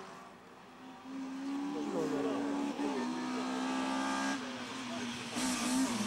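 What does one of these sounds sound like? A second race car engine roars as it accelerates up the road.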